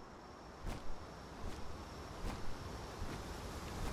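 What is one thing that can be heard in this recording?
A waterfall rushes and splashes nearby.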